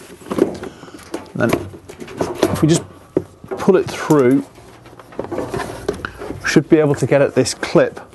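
A plastic panel clicks and rattles.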